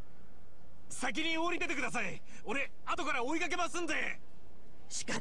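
A young man calls out with animation.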